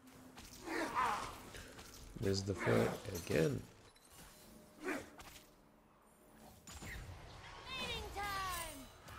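Magical spell effects whoosh and crackle in bursts.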